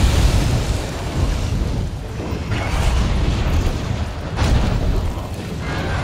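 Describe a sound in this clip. Flames crackle and burst with low, rumbling booms.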